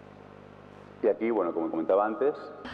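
A man speaks into a microphone in a hall, presenting calmly.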